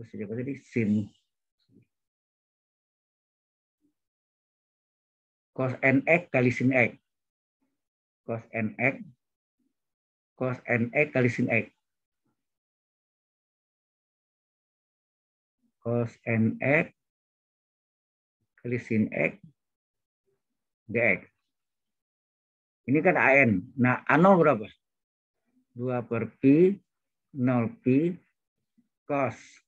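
A man speaks calmly over an online call, in short phrases with pauses.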